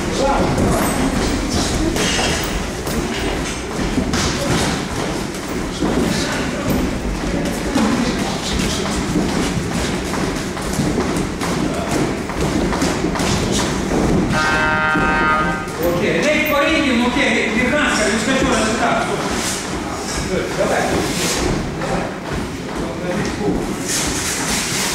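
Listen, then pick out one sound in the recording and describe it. Feet shuffle and thump on a padded floor.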